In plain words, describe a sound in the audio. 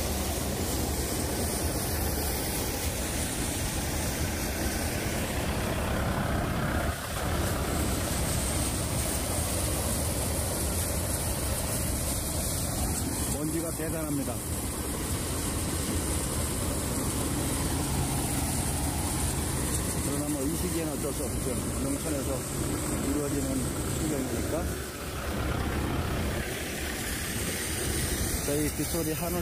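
A threshing machine rumbles and whirs steadily close by.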